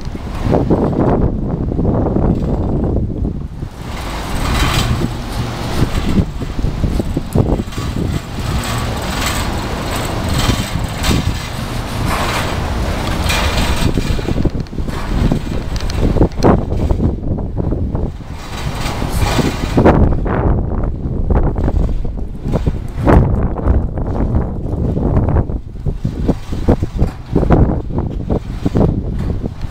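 Steel wheels clank on the rails.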